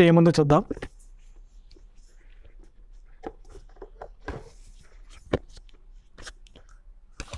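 A cardboard box is handled, with soft knocks and rustles.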